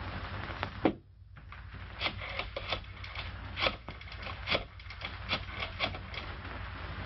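A telephone receiver clicks and rattles as it is handled.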